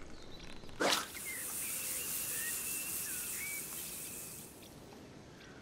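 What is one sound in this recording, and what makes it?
Fishing line hisses steadily as it runs off a reel.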